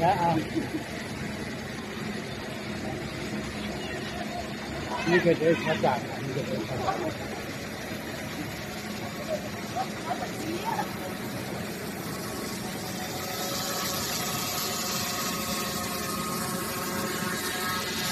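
Music plays through large loudspeakers outdoors.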